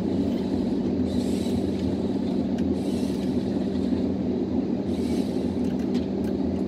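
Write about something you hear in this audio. A harvester's hydraulic crane whines as it swings.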